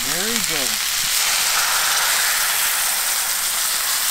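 Liquid pours into a sizzling pan.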